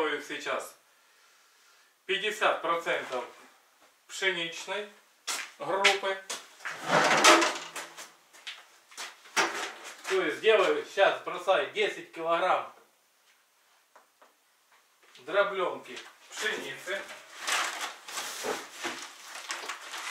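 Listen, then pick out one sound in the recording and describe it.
A man talks with animation close by, in a small echoing room.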